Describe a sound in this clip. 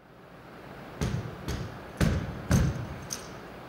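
Boots stamp heavily on a stage in an echoing hall.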